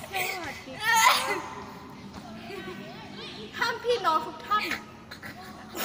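A teenage girl talks playfully close by.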